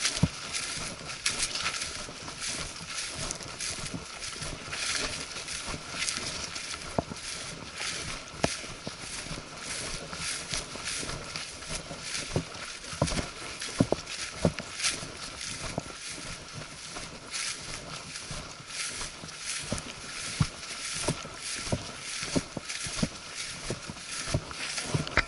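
Footsteps crunch and rustle through dry grass and brush.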